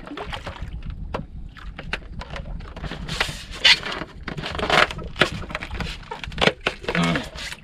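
Fishing line rustles and clicks as it is wound onto a spool.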